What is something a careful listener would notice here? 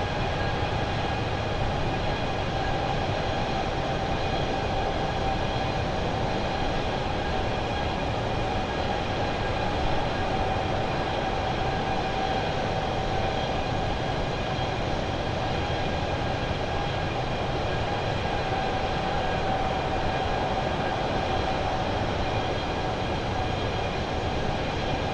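Jet engines roar steadily with a constant whine.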